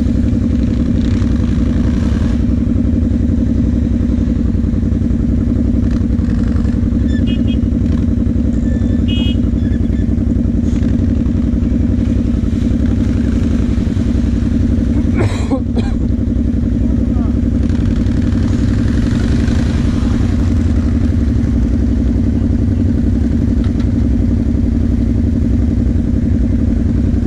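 A quad bike engine drones loudly and steadily up close.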